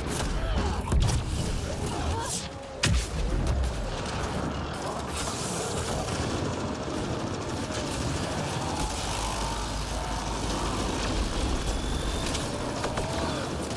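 A large creature roars and growls.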